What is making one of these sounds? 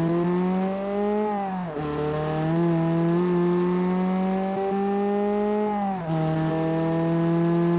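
A car engine revs hard, dropping briefly at each gear change and climbing again.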